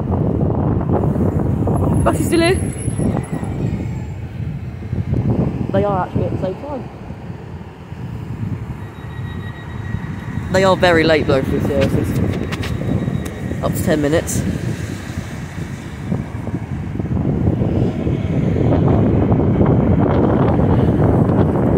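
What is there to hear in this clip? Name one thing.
A diesel train engine rumbles steadily nearby.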